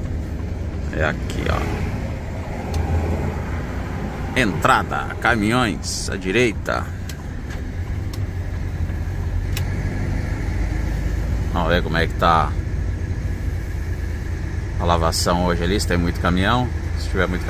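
A large truck engine rumbles low and steady from inside the cab.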